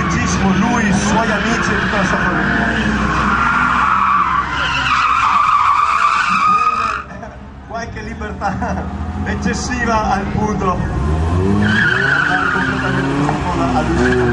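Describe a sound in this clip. Tyres screech loudly on asphalt.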